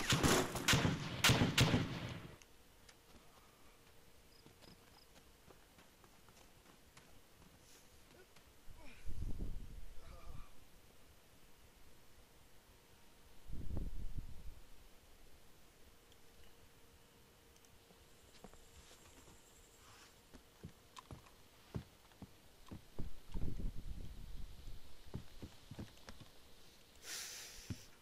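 Rifle shots fire in quick bursts, loud and close.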